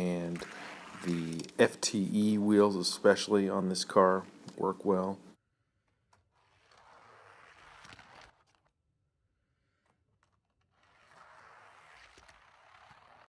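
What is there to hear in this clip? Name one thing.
A small toy car rolls quickly across a track with a light whirring rattle.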